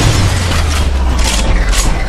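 A robot's heavy footsteps thud.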